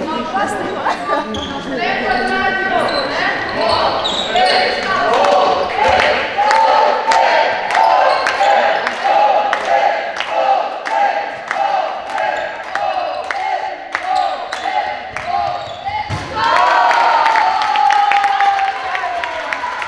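Sports shoes squeak on the floor.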